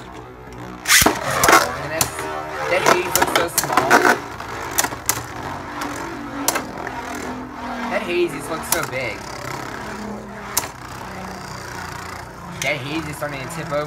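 Two spinning tops clash with sharp clacks.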